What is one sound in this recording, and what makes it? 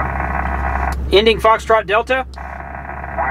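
A man speaks close into a radio microphone with animation.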